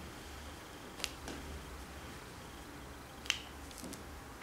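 A small plastic figure clicks against a ball on a table.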